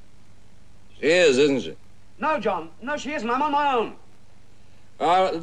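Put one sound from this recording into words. A man speaks close by in a low, sly voice.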